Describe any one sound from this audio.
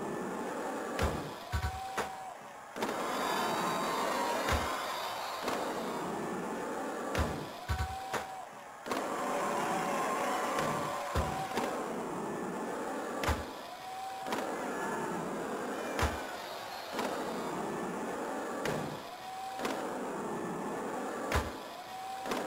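A skateboard clacks sharply as it lands.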